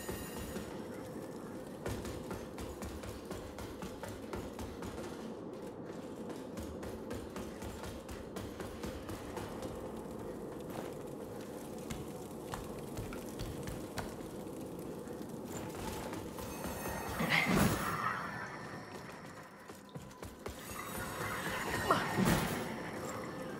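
Footsteps scuff and tap on a stone floor.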